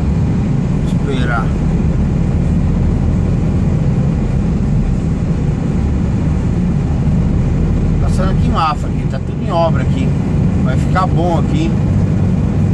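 A man speaks briefly and casually nearby.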